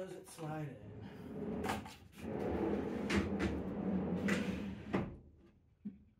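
Wooden boxes scrape and knock against a wooden floor.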